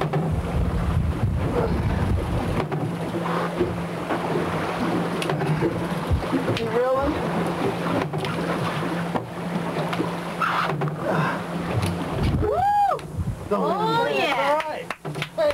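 Wind and waves rush around a boat at sea.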